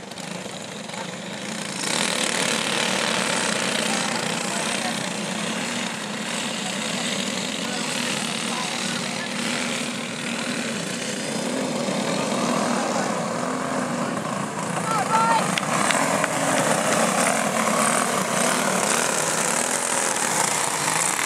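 Small racing kart engines buzz and whine around a track.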